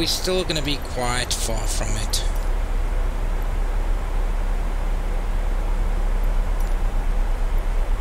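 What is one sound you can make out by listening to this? Aircraft engines hum steadily in the background.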